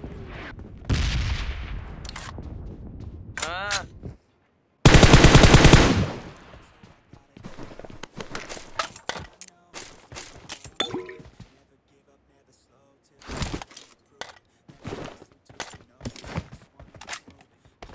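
Footsteps run across the ground.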